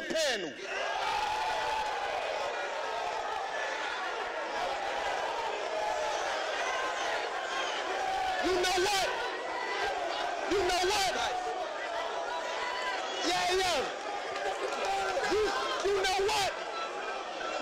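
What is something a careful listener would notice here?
A young man raps loudly and forcefully into a microphone.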